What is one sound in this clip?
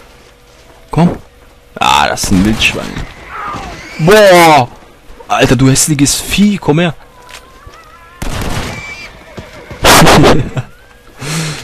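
A wild animal snarls and yelps in a fight.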